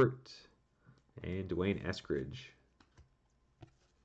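A trading card rustles softly in a hand.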